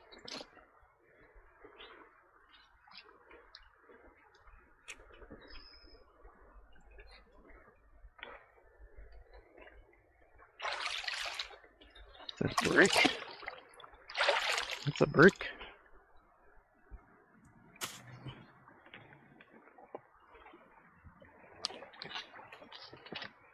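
A shallow stream trickles and gurgles close by.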